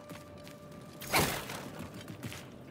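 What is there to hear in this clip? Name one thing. Fire whooshes in a fiery blast.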